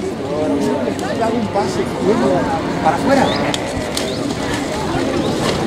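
A crowd of men and women chatter nearby outdoors, talking over one another.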